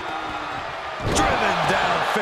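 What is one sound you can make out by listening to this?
A body slams heavily onto a wrestling ring mat.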